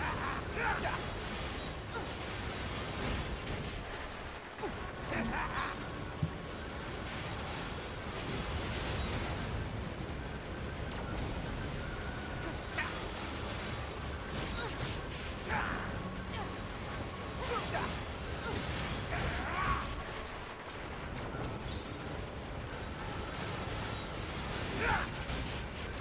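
Blades slash and clang sharply in a fast fight.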